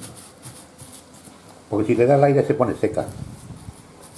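Wet dough squelches softly as a hand presses into it.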